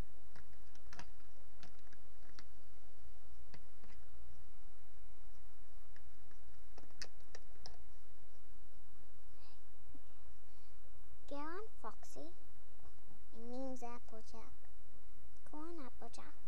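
Small plastic toys tap and click against a hard surface.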